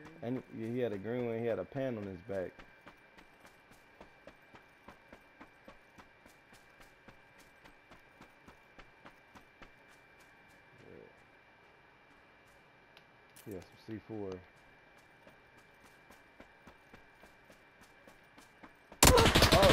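Footsteps run quickly over dirt and grass.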